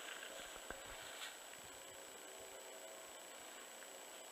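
A dog rustles through dry grass.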